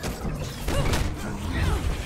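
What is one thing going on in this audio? A deep energy blast booms and rumbles.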